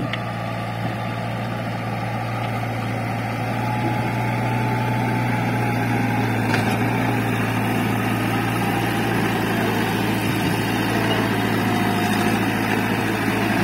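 A diesel backhoe engine rumbles steadily close by.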